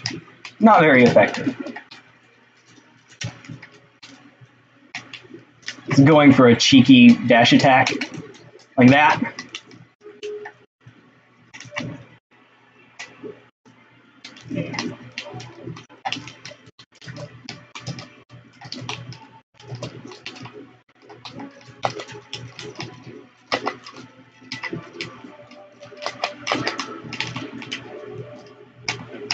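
Video game punches and effects pop and clatter rapidly.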